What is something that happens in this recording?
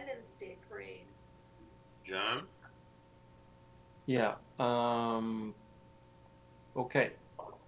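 A middle-aged man speaks over an online call, in short phrases.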